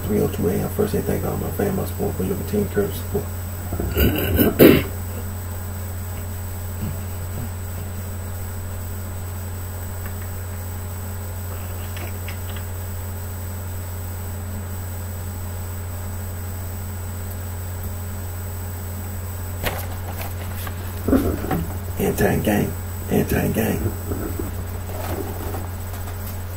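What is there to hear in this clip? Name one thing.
A middle-aged man reads out close to a microphone.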